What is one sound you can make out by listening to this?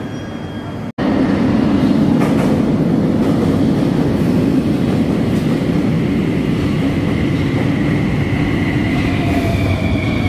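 A metro train rumbles into a station and screeches on the rails.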